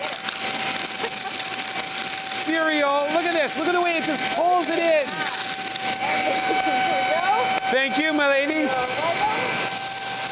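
A handheld vacuum cleaner whirs steadily.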